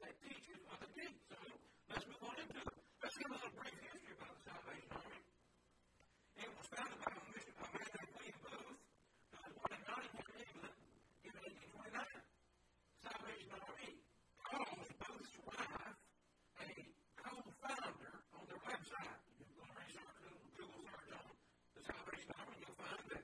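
A middle-aged man speaks clearly and steadily into a microphone.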